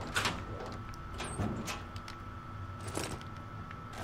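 A locker door clanks open.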